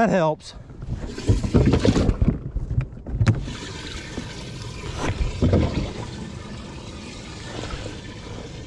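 Water splashes as fish thrash in a tank.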